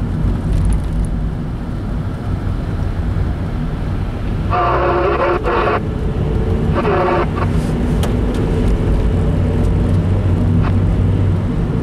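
Tyres hum steadily on a wet road.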